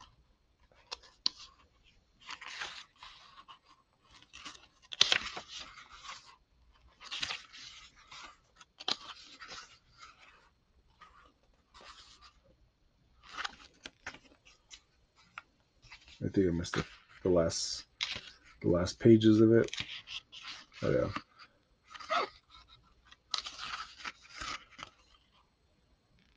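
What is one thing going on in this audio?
Paper pages rustle and flutter as a book's pages are turned.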